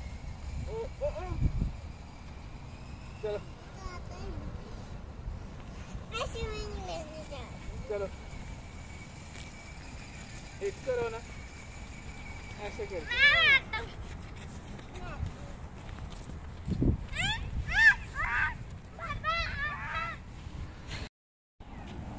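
Small children shout and squeal playfully nearby.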